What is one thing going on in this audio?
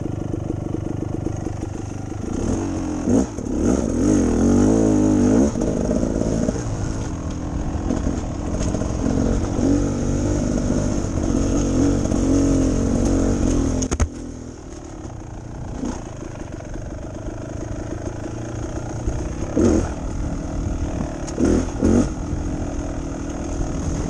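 A dirt bike engine revs and rumbles up close, rising and falling in pitch.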